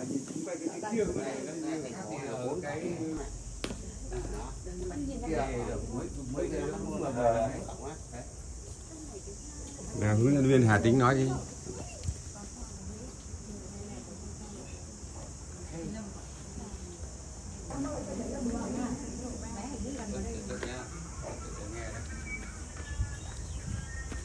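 A group of people murmur and talk quietly nearby.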